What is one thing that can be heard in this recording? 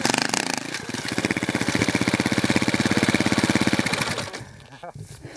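A dirt bike engine putters loudly up close and then cuts out.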